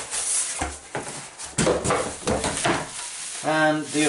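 Bubble wrap crinkles and rustles close by.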